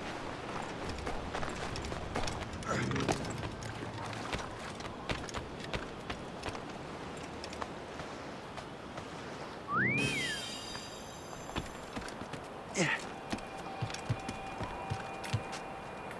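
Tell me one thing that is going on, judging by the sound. Quick footsteps run over wooden boards and rock.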